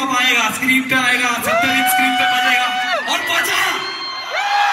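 A man sings loudly through a microphone in a large echoing hall.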